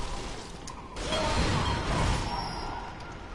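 A heavy axe swings and strikes.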